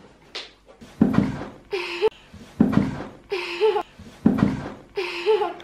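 A toddler slides down a plastic slide with a thump.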